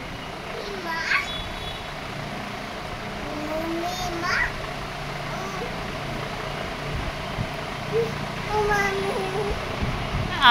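A toddler babbles softly close by.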